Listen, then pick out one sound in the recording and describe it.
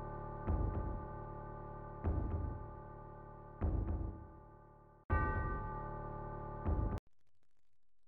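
Dramatic game music plays with heavy, repeated low beats.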